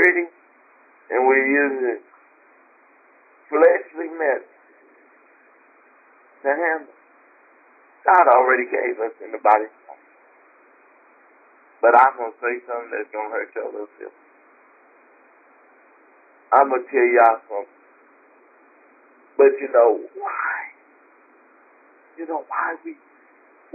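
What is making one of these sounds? A woman speaks slowly with long pauses, heard through a microphone.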